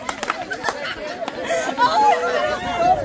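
A young woman laughs loudly up close.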